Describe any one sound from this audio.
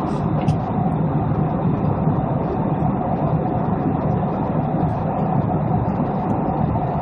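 A jet engine roars steadily in the background.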